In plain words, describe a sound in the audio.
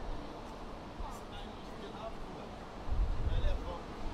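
Young men talk quietly as they pass nearby.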